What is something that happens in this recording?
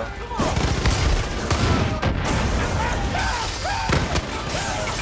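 A flamethrower roars in loud bursts.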